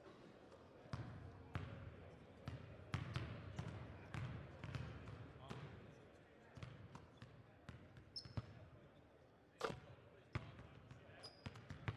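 Basketballs bounce on a hardwood floor in a large echoing gym.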